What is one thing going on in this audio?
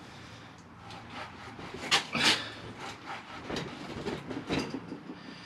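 Soil crunches and scrapes close by.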